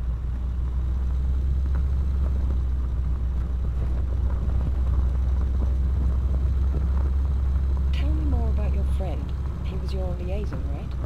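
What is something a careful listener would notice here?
Tyres crunch over a dirt road.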